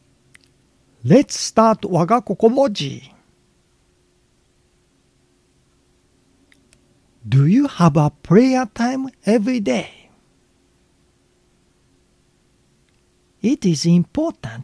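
An older man speaks calmly and close into a microphone, in short phrases with pauses.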